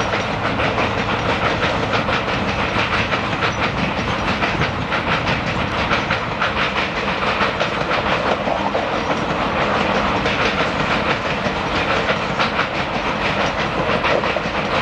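A passenger train rumbles across a bridge with rapid rhythmic clatter of wheels on rails.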